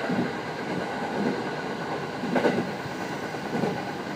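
A passing train rushes by close outside with a loud whoosh.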